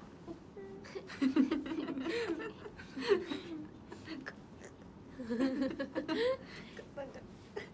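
Young women laugh together.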